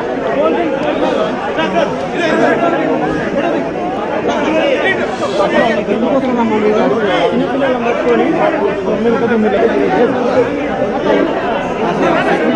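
A dense crowd of men talks and shouts all around, close by.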